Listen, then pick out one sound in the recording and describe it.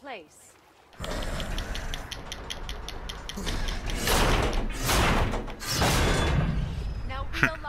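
A heavy metal mechanism grinds and rumbles as it turns.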